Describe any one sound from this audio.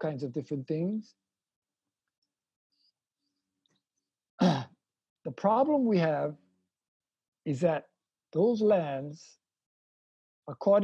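An elderly man speaks calmly over an online call, pausing between phrases.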